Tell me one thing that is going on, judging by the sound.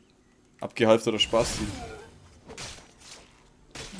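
A blade slashes and strikes a body.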